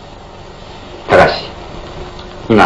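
A man speaks softly and sadly, close by.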